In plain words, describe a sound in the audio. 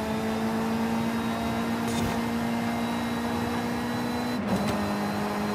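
A racing car engine roars at high revs.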